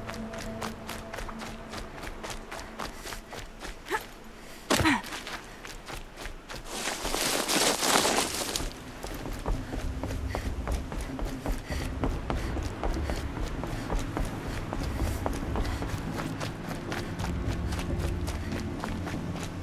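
Quick footsteps run over dirt and stone.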